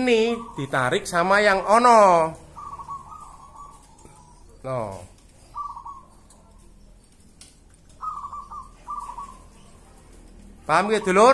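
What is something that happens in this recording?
Small birds chirp and sing nearby.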